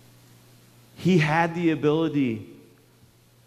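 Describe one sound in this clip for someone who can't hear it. A man speaks calmly in a large hall.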